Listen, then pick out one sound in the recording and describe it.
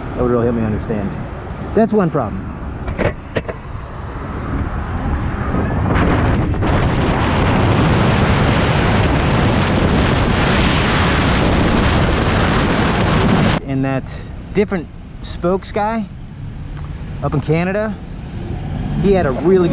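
A motorcycle engine hums as it rides along.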